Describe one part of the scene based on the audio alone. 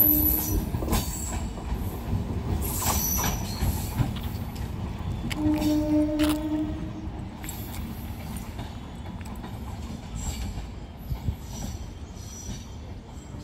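A train rumbles along the tracks and slowly fades into the distance.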